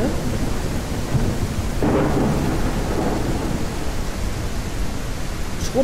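A young woman talks casually and close into a microphone.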